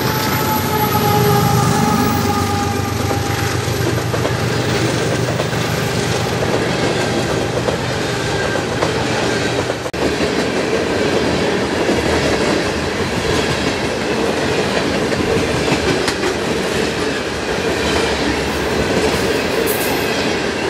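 Freight car wheels clatter and squeal steadily on the rails.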